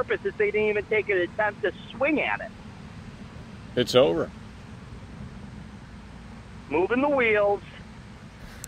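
A man speaks close to a microphone in short bursts, with long pauses.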